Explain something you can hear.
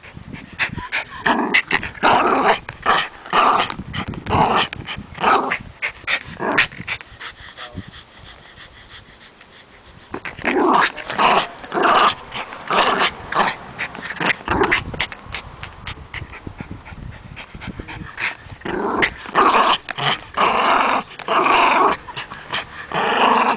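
A small dog growls playfully.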